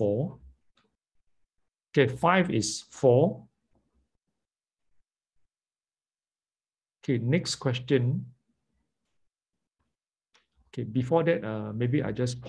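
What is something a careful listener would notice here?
A man speaks calmly and close to a microphone, in short bursts with pauses.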